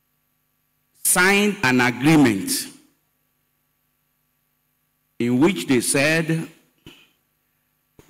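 An elderly man speaks slowly and firmly into a microphone, heard through loudspeakers.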